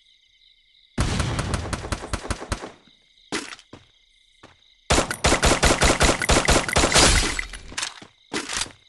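Rapid gunshots fire in loud bursts.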